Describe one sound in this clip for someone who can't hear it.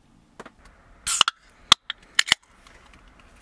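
Something clinks and taps sharply close by.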